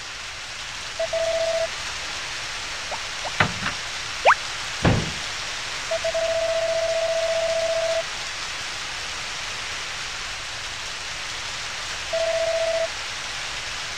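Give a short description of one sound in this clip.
A steady electronic beep tone plays in short bursts.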